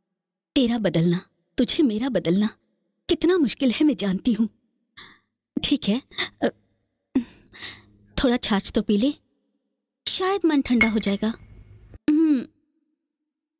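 A woman speaks in a low, serious voice close by.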